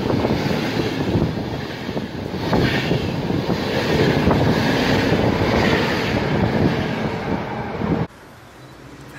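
A passenger train rushes past close by, wheels rattling over the rails.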